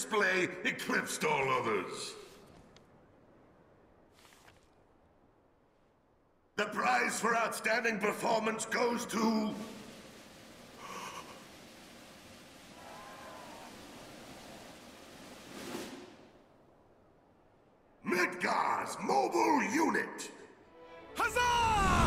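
A man speaks formally through a microphone, echoing in a large open space.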